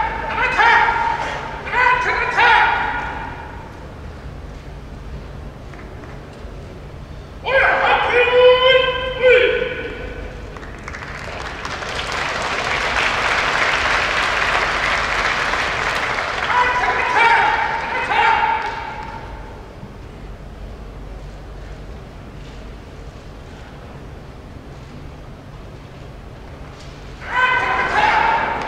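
A man shouts out in drawn-out calls.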